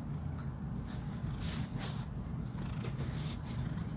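A hand rubs softly through a cat's fur.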